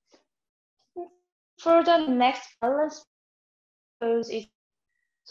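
A young woman speaks casually, close by.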